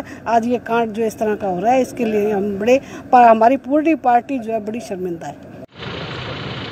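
A middle-aged woman speaks with animation close to a microphone outdoors.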